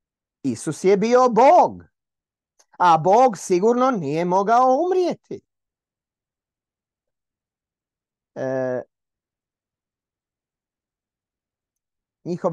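A middle-aged man speaks with animation into a microphone, heard through an online call.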